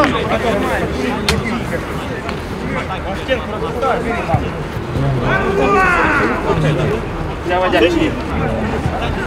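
Men shout and call out to each other outdoors.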